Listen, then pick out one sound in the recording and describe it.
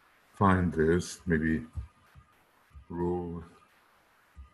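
A man speaks calmly and slowly into a close microphone.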